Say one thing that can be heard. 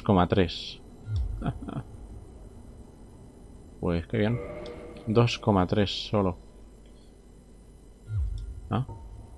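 A young man speaks in short bursts, close to a microphone.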